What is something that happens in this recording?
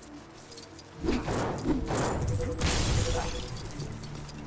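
A stand smashes apart with a loud crash.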